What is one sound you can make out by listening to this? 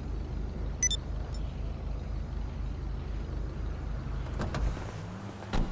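A car engine idles with a low, throbbing rumble.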